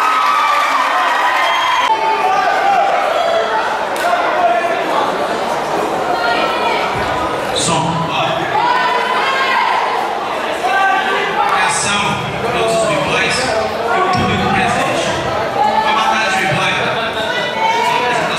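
A man talks with animation through a loudspeaker.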